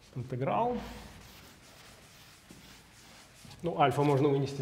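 A board eraser wipes across a board.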